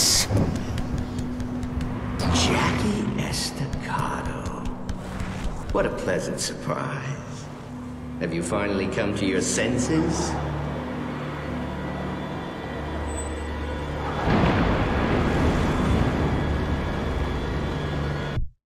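Serpent-like creatures hiss and growl close by.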